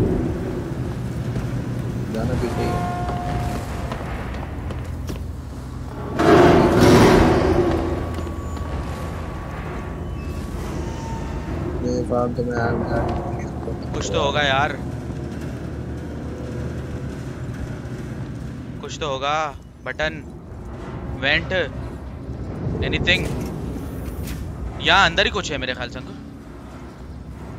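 A young man speaks quietly into a microphone.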